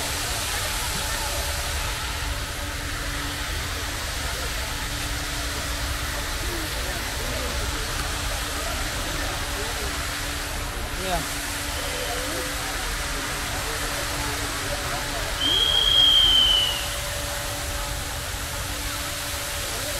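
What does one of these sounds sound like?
A fountain splashes steadily outdoors.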